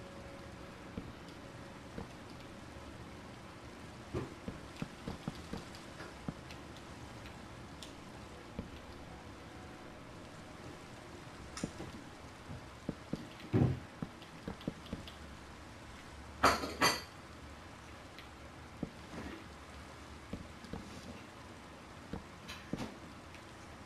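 Wooden blocks knock softly as they are placed.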